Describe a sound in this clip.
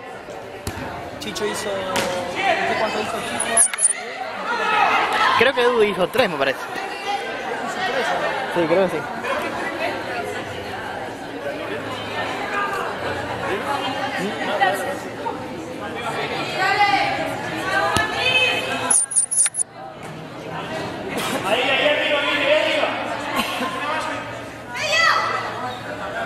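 A crowd of young women shouts and cheers in an echoing indoor hall.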